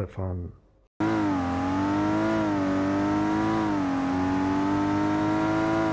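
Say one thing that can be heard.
A car engine hums steadily with a slight rise and fall in pitch.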